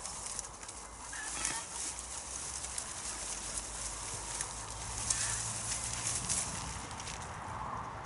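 Dry plant stalks rustle and snap as they are pulled up.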